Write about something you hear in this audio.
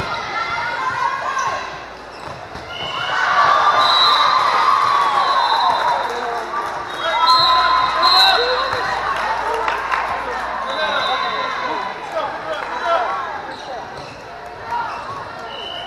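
Young female players call out to each other.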